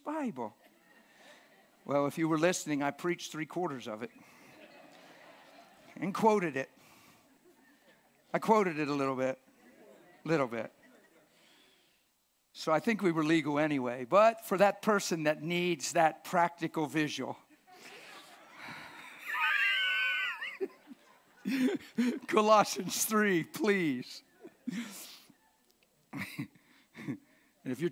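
An elderly man speaks calmly through a microphone in a large room, with pauses.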